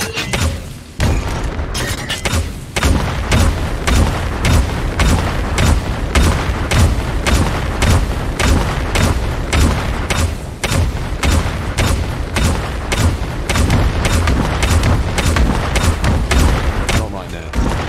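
Heavy thumps of combat hits land over and over.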